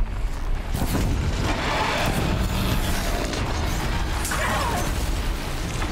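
Explosions burst with loud booms.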